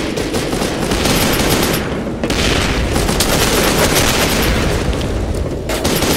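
An assault rifle fires.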